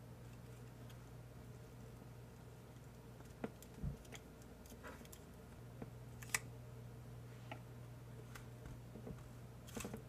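Scissors snip through paper with sharp clicks.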